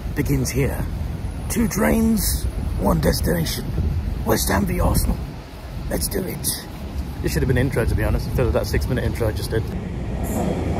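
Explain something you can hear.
A young man talks with animation close to a microphone, outdoors in wind.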